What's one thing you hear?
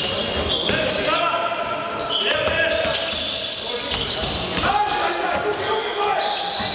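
A crowd of spectators murmurs and calls out.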